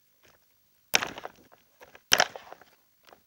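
A plastic part clicks sharply against a table.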